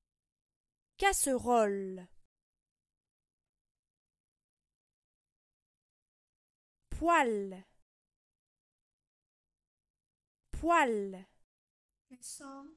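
A young woman says single words slowly and clearly, close by.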